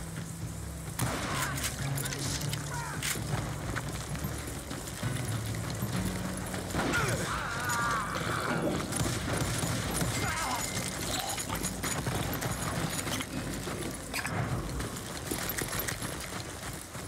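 Gunshots crack and echo.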